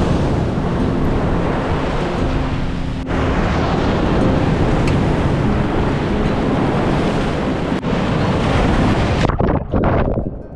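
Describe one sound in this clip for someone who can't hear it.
Waves crash and surge loudly onto a shore.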